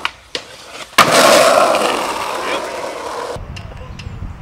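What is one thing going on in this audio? Skateboard wheels roll over rough pavement.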